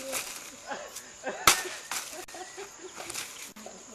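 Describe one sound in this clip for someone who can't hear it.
A blade thuds into the ground.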